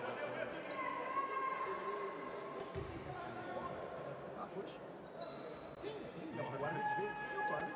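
Spectators murmur in a large echoing hall.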